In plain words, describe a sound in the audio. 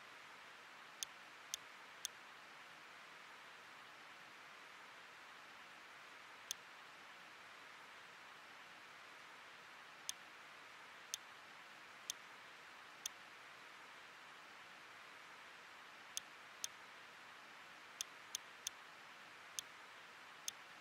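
Short electronic menu clicks tick one at a time.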